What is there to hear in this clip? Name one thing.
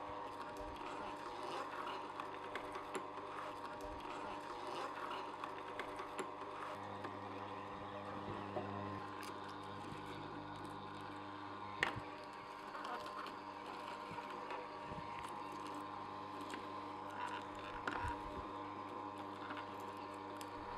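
A juicer motor hums steadily.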